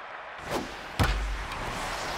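A bat cracks sharply against a ball.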